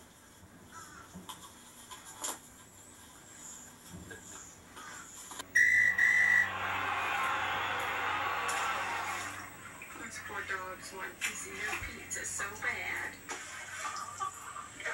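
Electronic game sounds play from a phone's small speaker.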